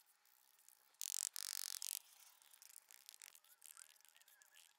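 A trowel scrapes across wet mortar on a step.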